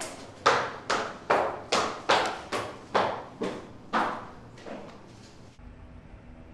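Hard heels click quickly down wooden stairs.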